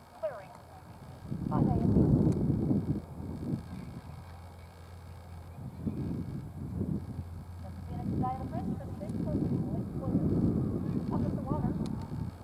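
A horse gallops across grass with dull, thudding hoofbeats.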